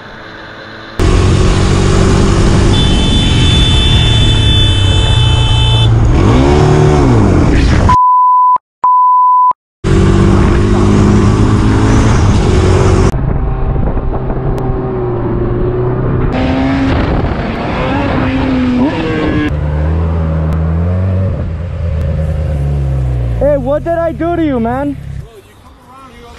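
A motorcycle engine roars and revs up and down close by.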